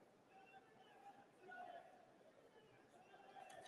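A large crowd murmurs faintly outdoors.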